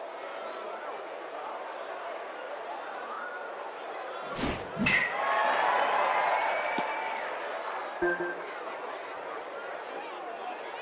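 A crowd murmurs steadily in a large stadium.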